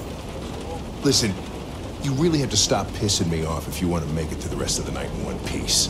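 An older man speaks in a gruff, irritated voice.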